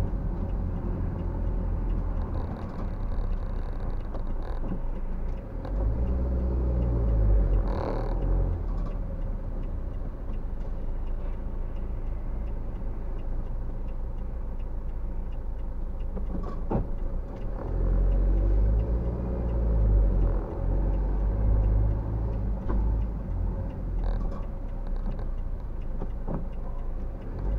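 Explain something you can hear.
A car's engine and tyres rumble from inside the cabin as it drives.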